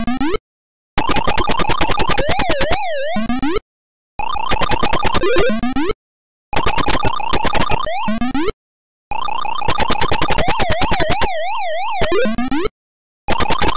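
A video game's rising electronic chirp plays.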